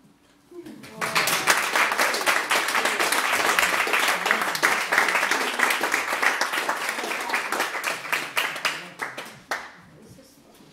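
An audience applauds loudly in a room.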